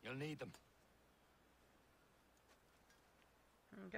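A sword is drawn from its sheath with a metallic ring.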